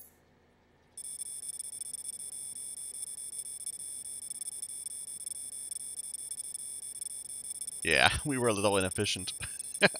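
A steady electronic tally tone hums as a score counts up.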